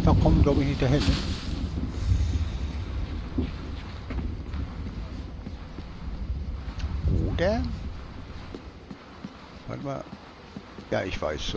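Soft footsteps pad across stone paving.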